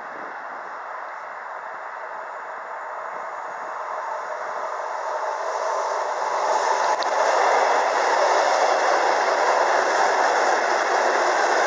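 A train approaches on the tracks and rumbles past close by, growing louder.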